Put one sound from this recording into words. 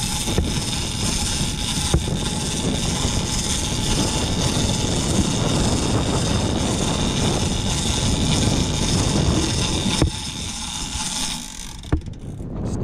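Wind buffets loudly outdoors at sea.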